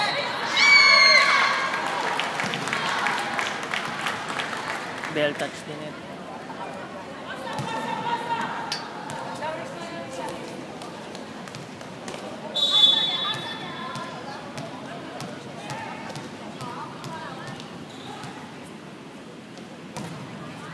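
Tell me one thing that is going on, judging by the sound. Volleyball players shout to each other on court.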